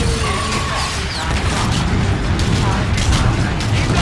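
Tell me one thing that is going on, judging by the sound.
Explosions boom and crackle nearby.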